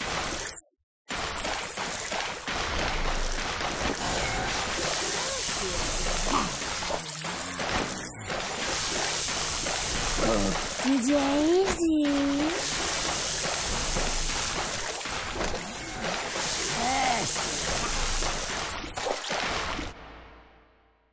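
Feet splash steadily through shallow water.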